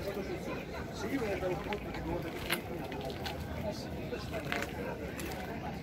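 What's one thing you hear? A woman speaks to a small group outdoors, heard from a short distance.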